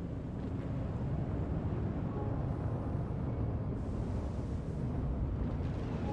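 A spaceship's engines hum with a steady low rumble.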